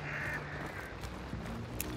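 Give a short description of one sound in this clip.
A revolver clicks as it is opened for reloading.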